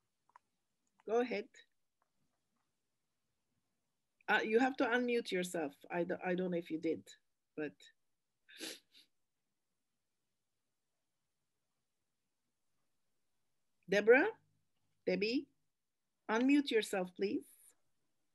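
A woman speaks calmly over an online call, reading out in short phrases.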